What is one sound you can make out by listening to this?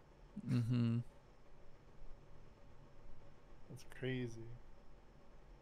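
A young man makes two short vocal sounds close to a microphone.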